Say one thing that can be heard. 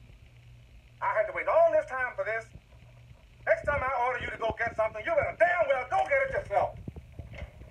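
A man speaks loudly and angrily.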